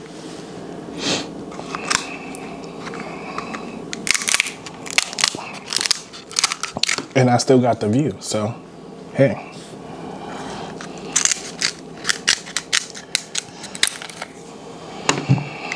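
Crab shells crack and snap under a cracker tool.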